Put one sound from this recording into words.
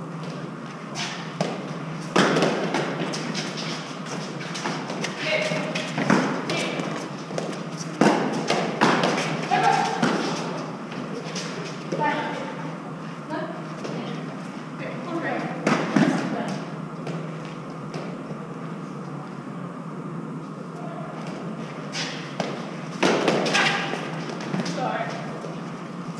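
A gloved hand slaps an Eton fives ball against concrete walls in an echoing court.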